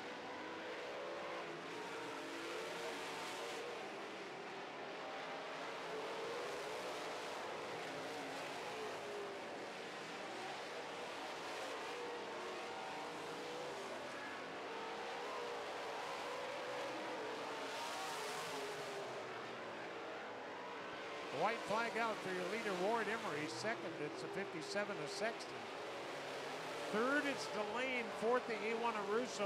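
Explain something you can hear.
Race car engines roar and rev, with the revving sweeping up and down.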